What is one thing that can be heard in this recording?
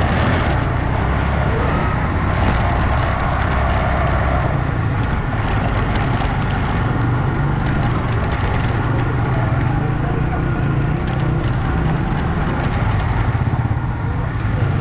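A busy street crowd murmurs steadily outdoors.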